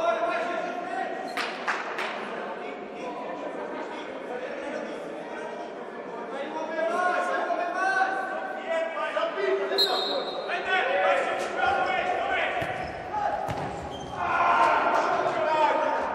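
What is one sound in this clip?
A ball thuds as players kick it on a hard indoor court.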